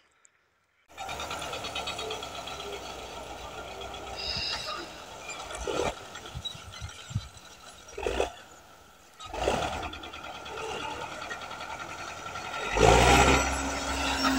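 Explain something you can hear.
A tractor engine idles in the distance.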